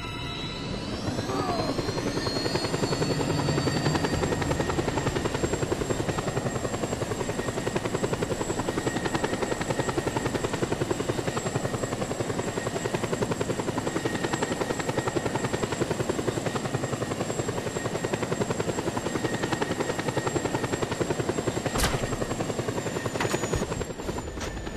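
A helicopter's rotor chops loudly and steadily overhead.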